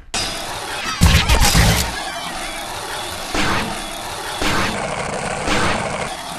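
A skateboard grinds along a metal edge.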